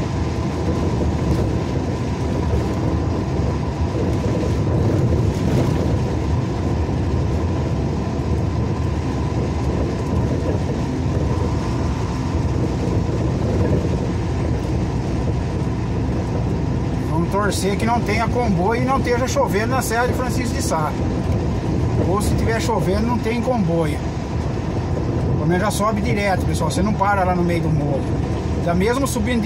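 Tyres hiss steadily on a wet road.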